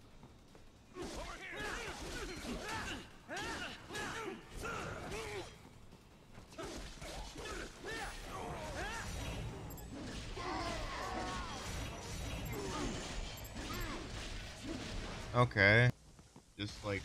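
Swords clash and clang in a fast fight.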